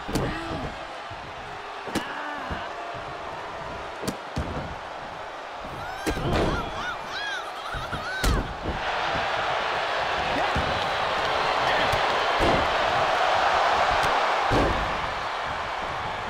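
A large crowd cheers loudly in a big arena.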